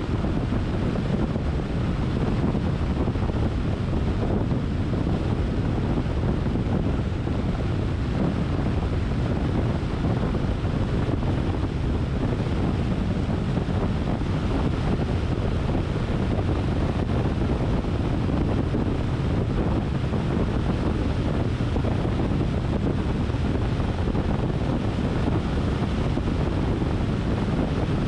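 Tyres roll steadily on a smooth road from inside a moving car.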